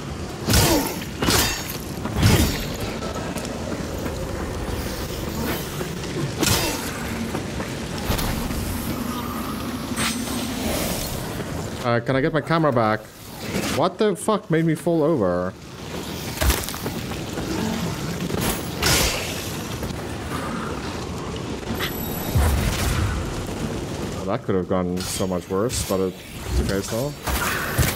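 Heavy weapon blows strike and clash again and again.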